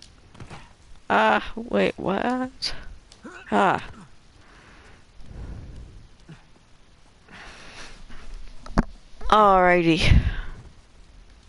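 A young man grunts and strains with effort.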